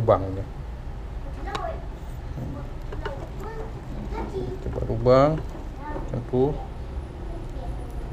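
Chopsticks stir and scrape through cooked rice in a pot.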